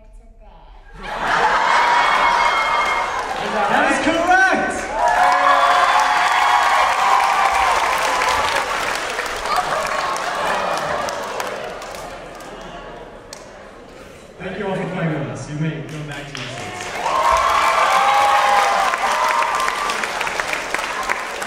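A crowd cheers and screams loudly in a large echoing hall.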